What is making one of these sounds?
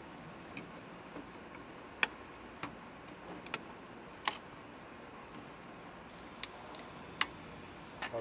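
Plastic connectors click and knock as they are fitted.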